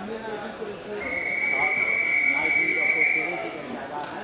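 A referee blows a long whistle blast.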